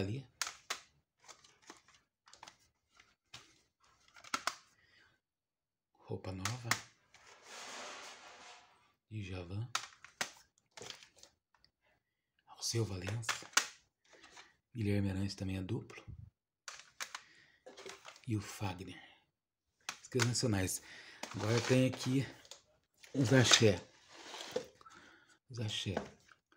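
Plastic disc cases click and clatter as they are picked up and put down.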